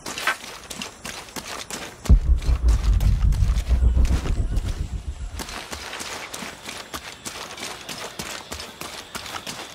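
Footsteps crunch on dirt and leaves.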